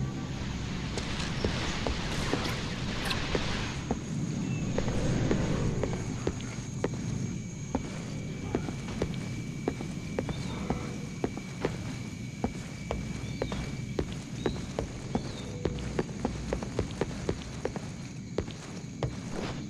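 Footsteps thud steadily on wooden boards.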